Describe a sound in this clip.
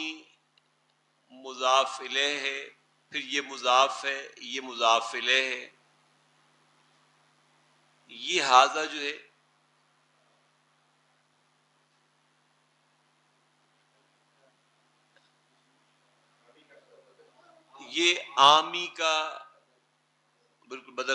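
An elderly man lectures calmly in short bursts, heard close through a microphone.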